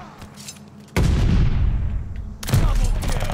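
A loud blast booms with a deep rumble.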